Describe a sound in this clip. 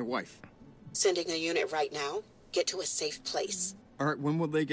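A woman answers calmly through a phone.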